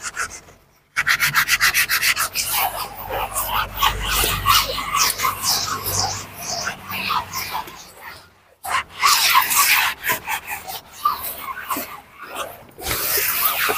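A stiff brush scrubs rapidly across a hard floor.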